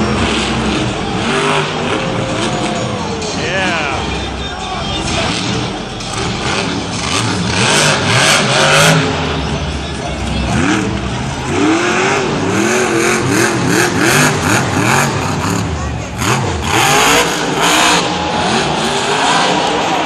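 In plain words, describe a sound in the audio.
A monster truck engine roars and revs loudly.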